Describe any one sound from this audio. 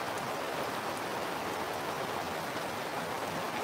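Water pours from a kettle onto the ground.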